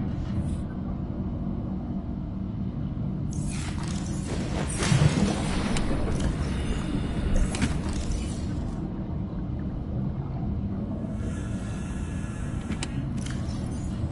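A low underwater rumble drones steadily.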